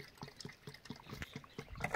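Water pours from a plastic jug into a metal kettle.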